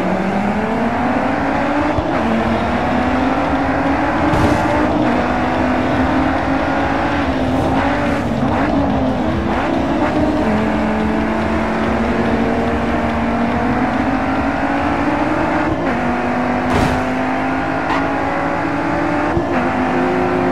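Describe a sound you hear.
A racing car engine roars loudly, its pitch rising through the gears.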